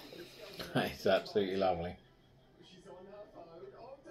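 A man sips and gulps a drink.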